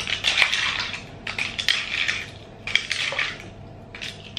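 A spoon stirs and clinks in a glass.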